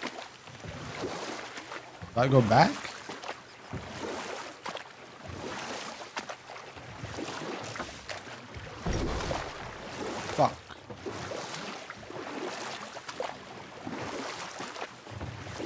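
Wooden oars splash and paddle through calm water.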